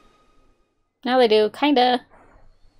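A young woman speaks briefly and calmly close to a microphone.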